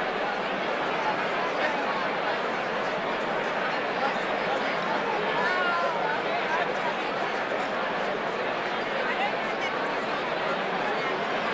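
A large crowd of men and women chatters all around in a big echoing hall.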